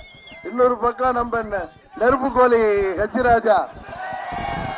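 A man speaks loudly and with passion into a microphone, heard through loudspeakers outdoors.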